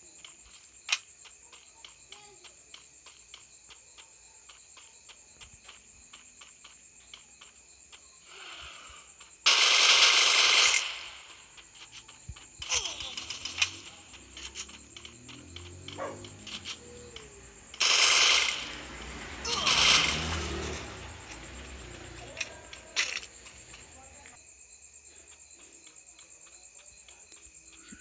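Footsteps patter quickly over grass and floor.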